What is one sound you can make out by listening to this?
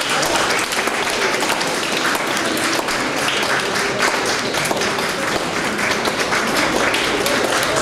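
An audience applauds steadily in an echoing hall.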